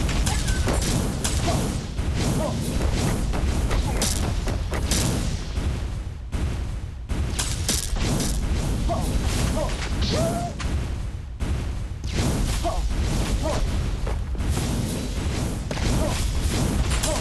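Explosions boom and crackle rapidly without pause.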